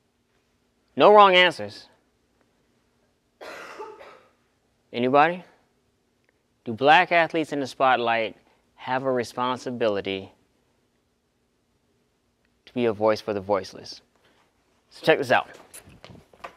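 A young man speaks calmly through a microphone, in short phrases with pauses.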